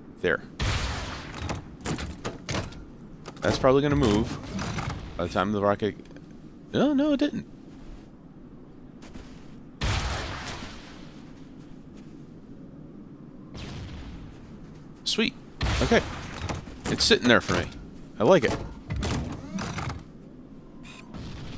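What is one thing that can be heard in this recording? Heavy gunfire blasts in bursts.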